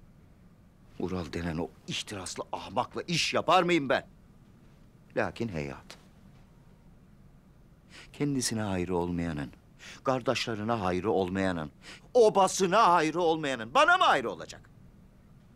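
A middle-aged man speaks forcefully and with emotion, close by.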